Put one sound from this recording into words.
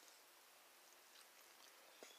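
A young man chews food crunchily close by.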